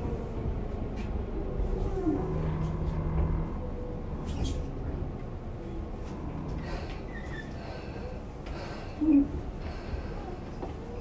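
A train rumbles along the tracks with a low, steady roar.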